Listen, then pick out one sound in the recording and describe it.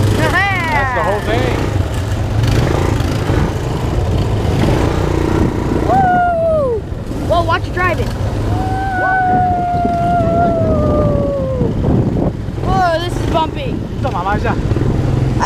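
A quad bike engine rumbles steadily close by.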